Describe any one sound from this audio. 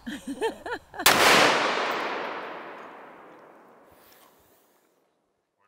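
A rifle fires a single loud shot that echoes and slowly fades.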